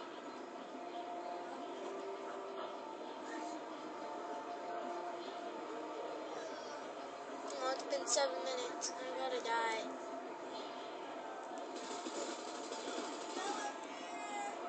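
Muffled video game battle sounds play through a small speaker.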